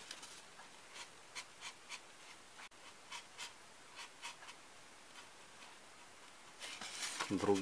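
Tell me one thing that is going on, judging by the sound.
A felt-tip marker squeaks and scratches in short strokes on a foam tray.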